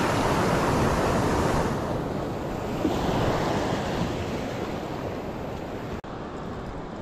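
Waves wash and foam onto the shore nearby.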